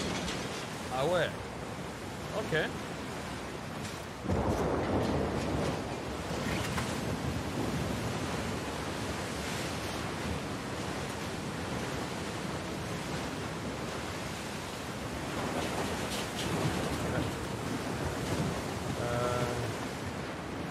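A man talks now and then into a close microphone.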